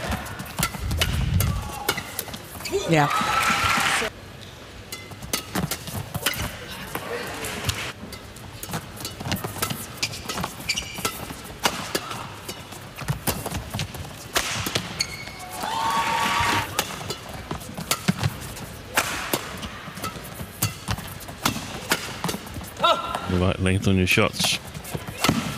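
Shuttlecocks are struck with sharp pops of rackets in a rally.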